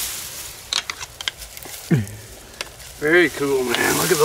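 Dry grass rustles and crackles as a man moves through it.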